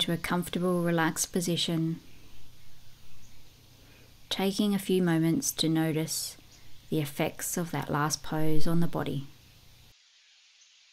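A woman speaks calmly and softly close to a microphone.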